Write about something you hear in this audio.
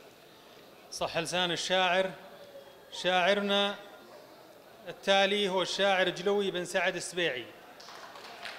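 A man sings a drawn-out chant into a microphone in an echoing hall.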